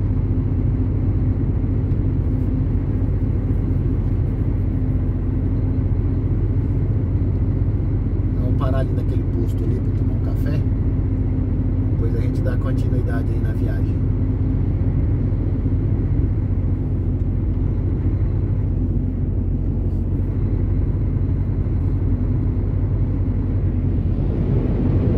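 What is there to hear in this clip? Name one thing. A truck's engine rumbles low and steady.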